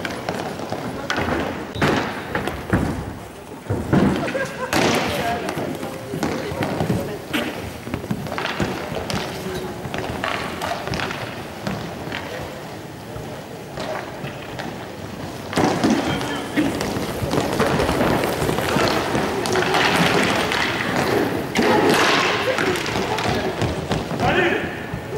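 Skate wheels roll and scrape across a hard floor.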